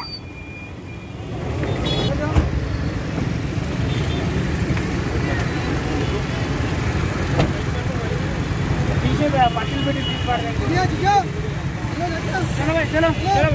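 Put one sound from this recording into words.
Several men talk agitatedly nearby.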